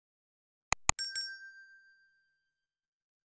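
A bell chimes briefly.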